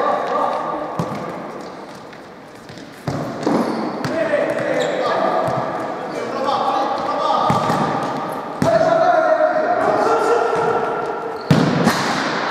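A ball is kicked with sharp thuds that echo around a large hall.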